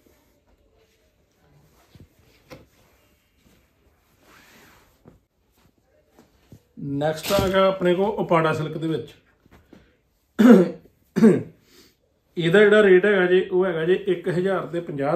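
Fabric rustles as it is unfolded and smoothed.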